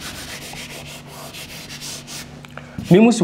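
Chalk scratches on a board.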